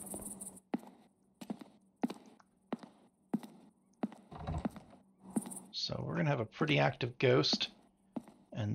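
Footsteps thud steadily across a floor.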